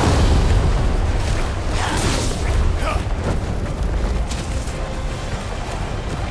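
Magic blasts burst and crackle in a game battle.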